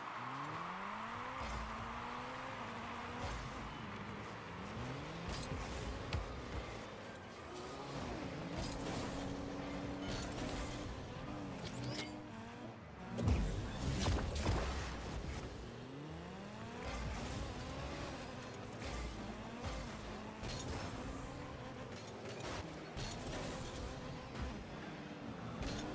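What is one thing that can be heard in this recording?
A car engine revs up and down, rising in pitch as it speeds.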